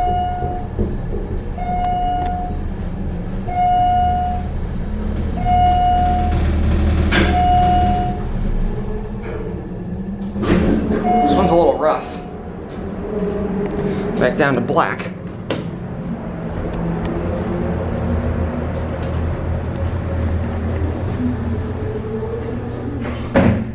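A traction elevator hums as the car travels.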